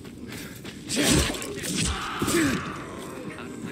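A heavy weapon thuds into a body several times.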